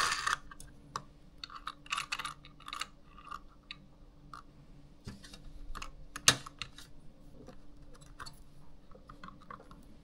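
Plastic parts click and rattle as hands fit cables and components together.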